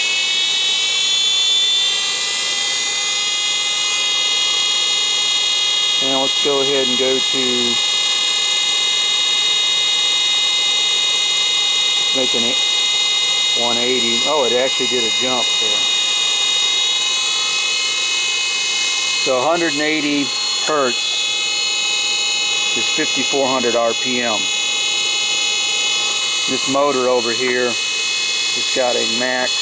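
An electric motor whines steadily, its pitch rising at first and then holding.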